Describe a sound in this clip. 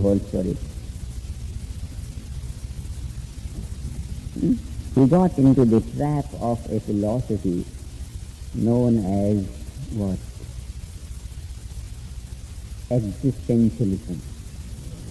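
A man speaks calmly and slowly, with pauses.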